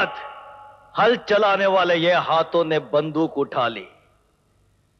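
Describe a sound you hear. A man speaks angrily and loudly.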